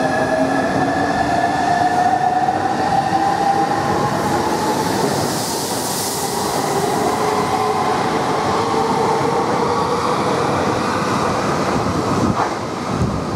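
A train speeds past with a loud rushing roar and a rising whine.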